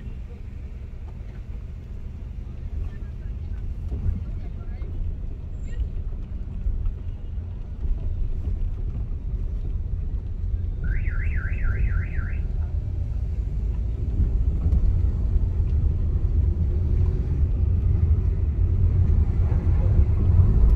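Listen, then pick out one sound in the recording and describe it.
Tyres roll over a rough road surface.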